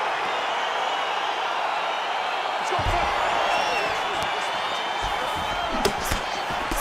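A crowd roars and cheers steadily in a large arena.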